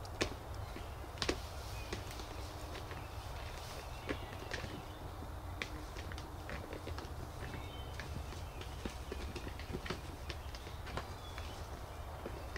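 Male turkeys drum with a deep, low hum nearby.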